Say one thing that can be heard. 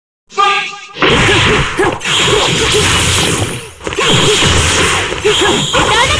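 Fighting game sound effects of rapid slashes and hits crash loudly.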